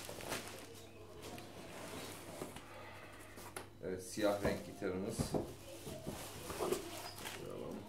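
A cardboard box scrapes and bumps against a table.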